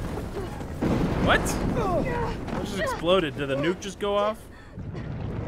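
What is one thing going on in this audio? A young woman groans and pants with strain.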